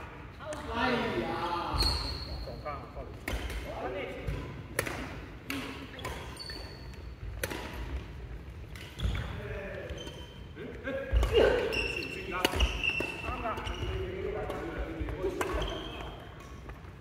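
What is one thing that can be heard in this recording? Men and women talk and call out nearby in a large echoing hall.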